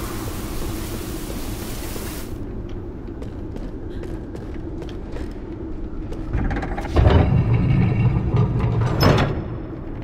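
Small footsteps patter on wooden boards.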